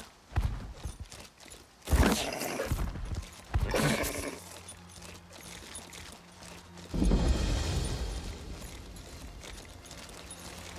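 A horse's hooves thud as it trots over grass.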